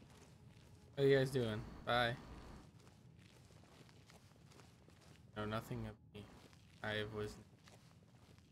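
A young man talks into a close microphone in short, lively bursts.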